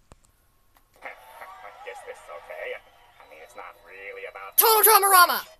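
Sound from a television plays faintly.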